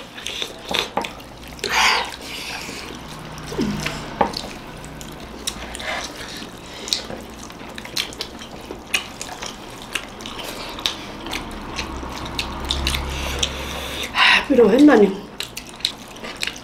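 Mouths chew and smack wetly, close up.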